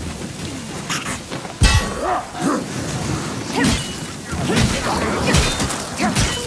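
Heavy metal blades strike and clash in a fight.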